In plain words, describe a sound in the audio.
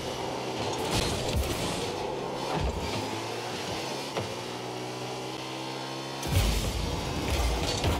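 A rocket boost roars in short bursts.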